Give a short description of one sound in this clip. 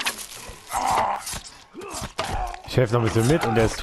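Heavy blows thud in quick succession.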